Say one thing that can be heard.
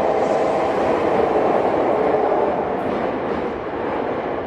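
An electric train pulls away from the platform and rumbles off.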